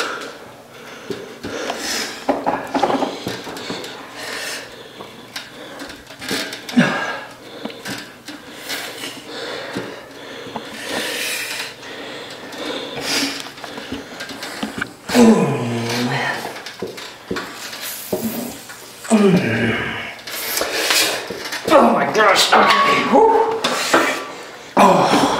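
An exercise machine clicks and rattles as its handles are worked.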